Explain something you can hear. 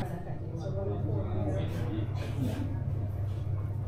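A young woman yawns loudly close by.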